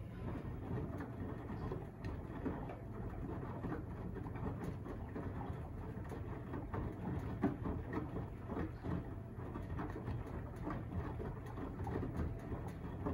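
Water and wet laundry slosh inside a washing machine.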